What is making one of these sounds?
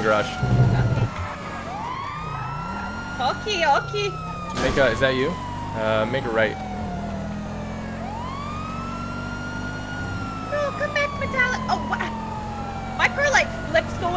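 A police siren wails steadily, rising and falling in long sweeps.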